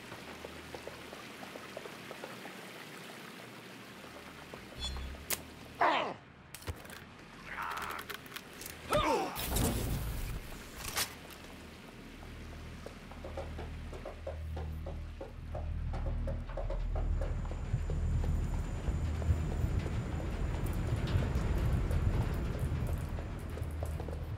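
Footsteps tap on a hard floor.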